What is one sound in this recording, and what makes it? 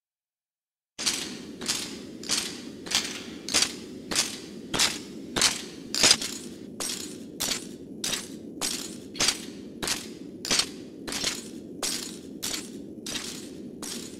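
Armoured footsteps clank steadily on stone in an echoing hall.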